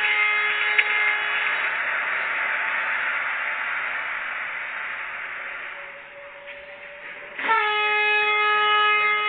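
A train's engine hums as the train rolls slowly along the tracks.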